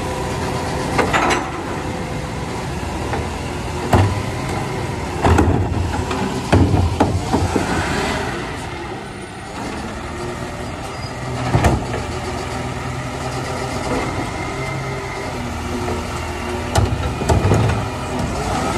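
Rubbish thuds and bangs as a bin is emptied into a truck.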